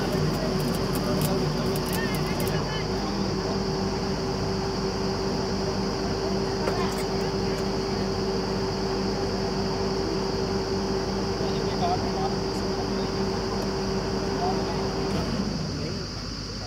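A drilling rig engine runs with a loud, steady drone that drops off partway through.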